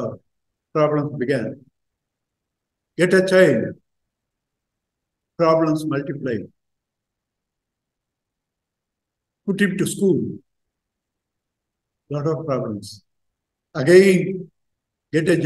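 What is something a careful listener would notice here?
An elderly man speaks calmly in short phrases with pauses, heard through an online call.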